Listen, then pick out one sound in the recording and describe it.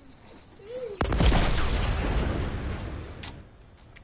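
A loud explosion booms and rumbles, then fades.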